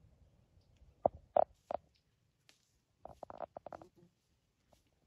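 Twigs snap and crack as a moose steps through the brush.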